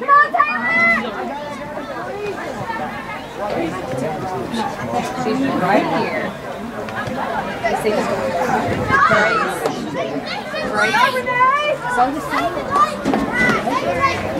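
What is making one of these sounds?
Spectators shout and cheer from the sidelines outdoors.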